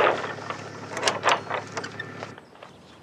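A metal latch rattles and clicks on a wooden door.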